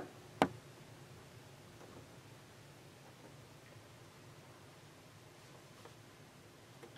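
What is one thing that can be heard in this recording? A sewing machine hums quietly as it stitches.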